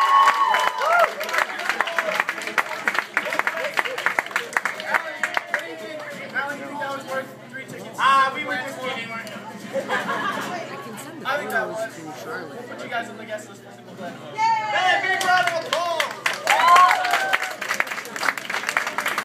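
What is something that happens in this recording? A crowd of young women screams and cheers loudly.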